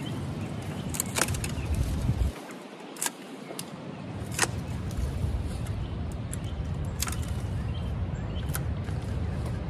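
Pruning shears snip through dry stems.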